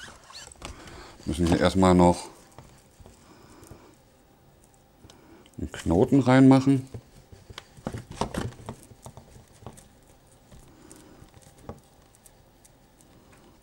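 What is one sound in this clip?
Foil wrapping crinkles and rustles as it is opened.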